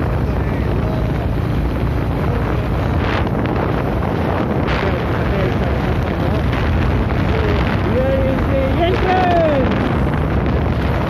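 Wind rushes loudly and steadily against a moving microphone.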